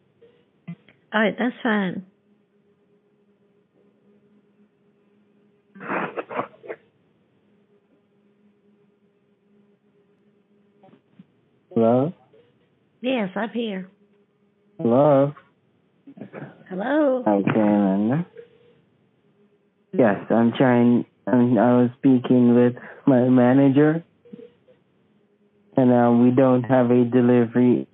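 An elderly woman talks with animation over a phone line.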